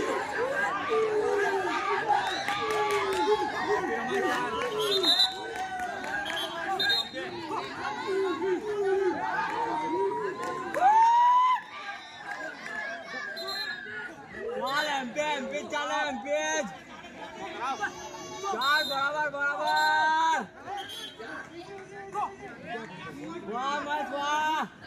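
A crowd of young people shouts and cheers outdoors.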